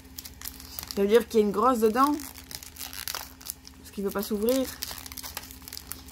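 A foil wrapper tears open.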